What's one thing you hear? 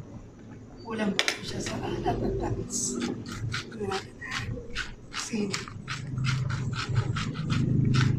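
A seasoning shaker rattles and clicks in quick bursts.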